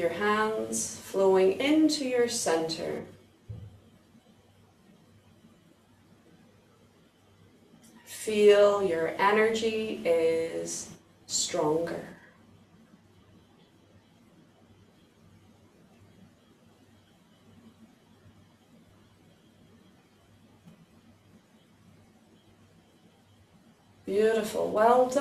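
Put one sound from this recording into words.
A woman speaks calmly and clearly, close by, in pauses.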